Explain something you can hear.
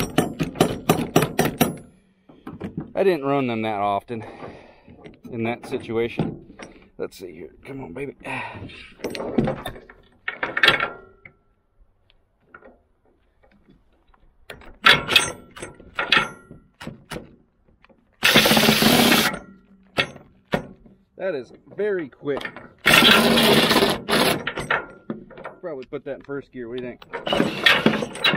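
Metal parts clink and clank.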